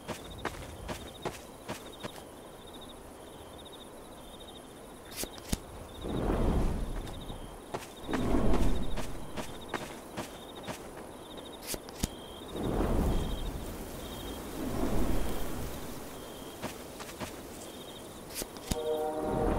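Footsteps tap steadily on dirt.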